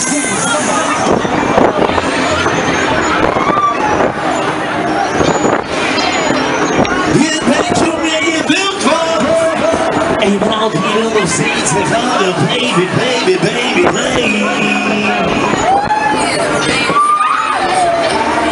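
A fairground ride spins and rumbles.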